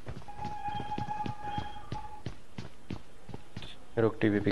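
Quick footsteps run on a hard floor.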